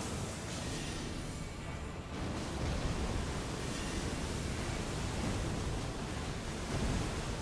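Bright spears of light crash down with heavy booms.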